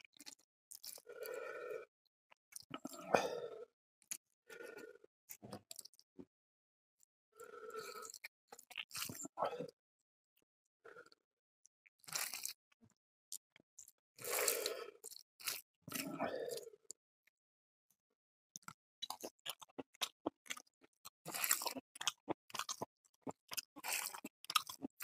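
Food squelches wetly as a hand mixes rice close to a microphone.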